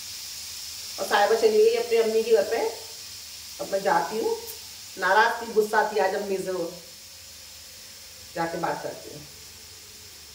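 A woman speaks calmly close by, in short bursts.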